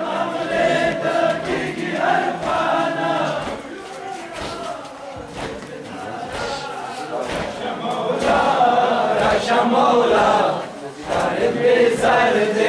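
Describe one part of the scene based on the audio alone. A crowd of men chants loudly in unison outdoors.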